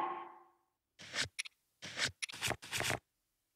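Soft menu clicks tick several times.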